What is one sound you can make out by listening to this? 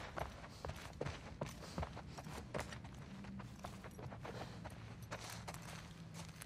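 Footsteps walk steadily across a wooden floor.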